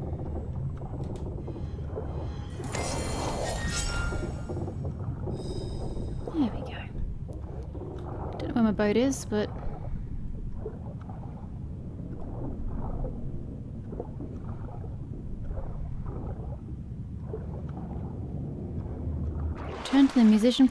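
A low, muffled underwater rumble goes on steadily.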